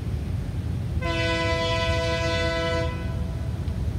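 A train horn blows loudly in a long chord.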